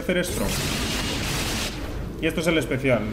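Sword strikes slash and clang rapidly.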